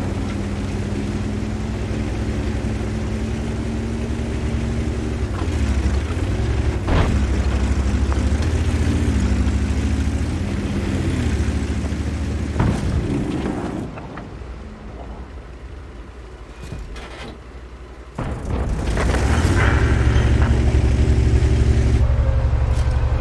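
A heavy tank engine rumbles and drones steadily, rising and falling in pitch.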